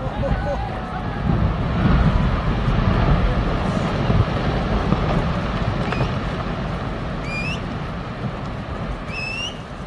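A huge mass of ice breaks off and crashes into water with a deep, rolling roar.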